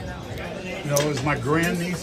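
Casino chips click together as they are stacked.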